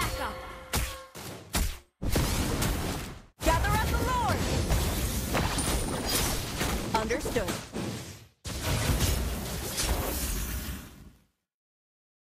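Game spell effects blast and crackle during a fight.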